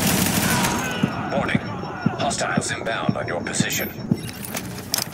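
Gunshots crack nearby in quick bursts.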